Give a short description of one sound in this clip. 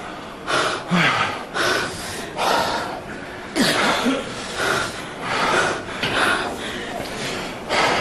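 A woman cries out and wails through a head microphone.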